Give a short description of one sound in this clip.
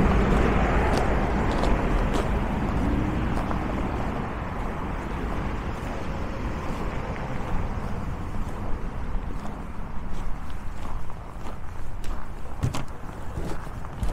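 Footsteps crunch on packed snow.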